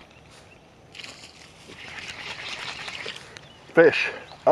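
A fishing reel whirs and clicks as it is cranked.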